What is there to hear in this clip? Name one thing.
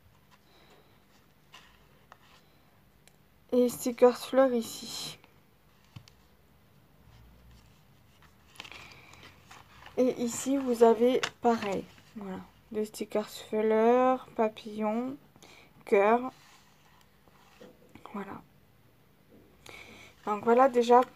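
Paper rustles softly as it is handled.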